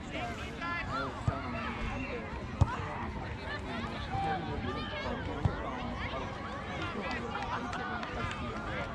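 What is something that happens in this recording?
Many children shout and call out across an open field outdoors.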